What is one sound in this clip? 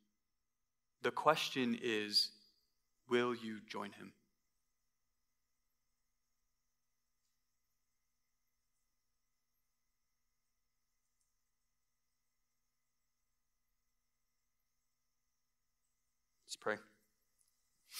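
A young man speaks calmly through a microphone, with long pauses.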